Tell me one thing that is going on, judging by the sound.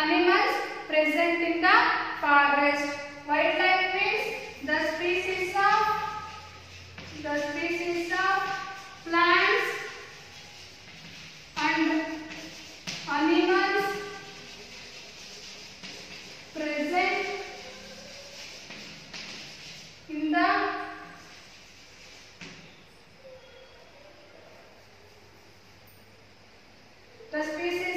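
A young woman speaks clearly and slowly, as if teaching, close by.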